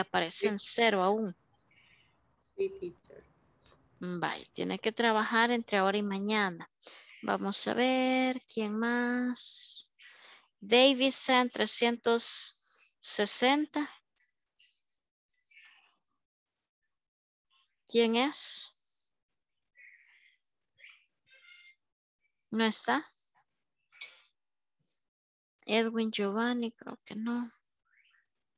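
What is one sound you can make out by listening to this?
A woman speaks with animation over an online call, in bursts with pauses.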